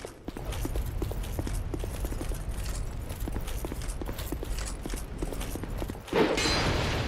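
Armoured footsteps clatter on stone.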